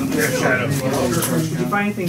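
Playing cards are shuffled and riffle softly.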